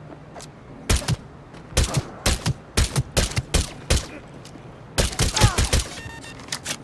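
A pistol fires in quick bursts of sharp shots.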